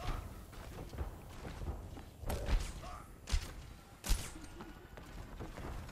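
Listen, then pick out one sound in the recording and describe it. A buzzing energy beam weapon fires in short bursts.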